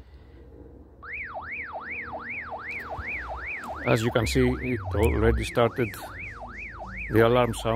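A handheld radio sounds a rapid, rising and falling electronic alarm through its small speaker.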